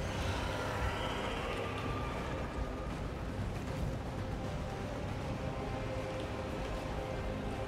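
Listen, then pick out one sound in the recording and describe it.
Heavy metallic footsteps clank.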